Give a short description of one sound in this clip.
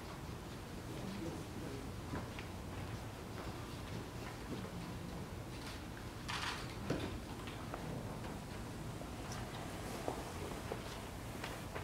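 Keyboard music plays steadily in a large room.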